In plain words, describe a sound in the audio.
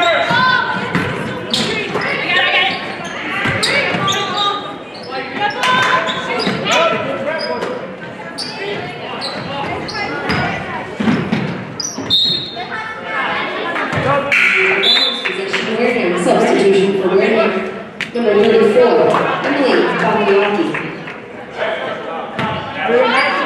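Spectators talk and cheer in a large echoing gym.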